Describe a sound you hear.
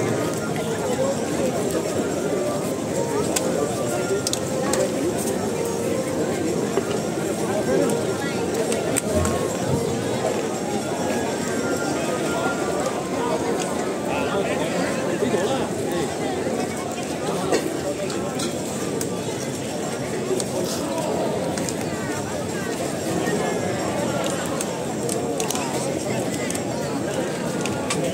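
A large crowd chatters and murmurs outdoors all around.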